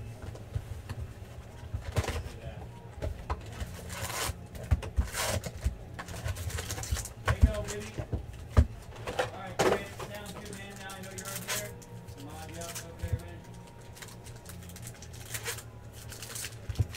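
Card packs rustle and crinkle as hands handle them.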